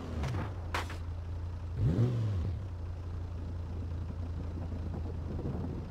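Wooden planks clatter under a car's tyres.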